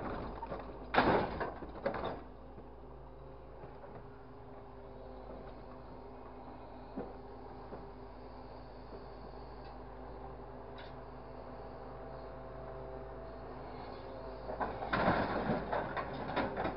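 The diesel engine of a grapple loader runs.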